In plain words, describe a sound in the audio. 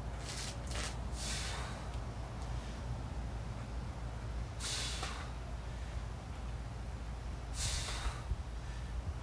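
A man breathes out sharply with effort.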